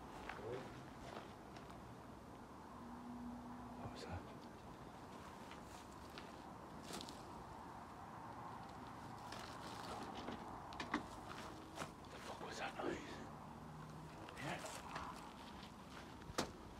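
Footsteps crunch through dry undergrowth outdoors.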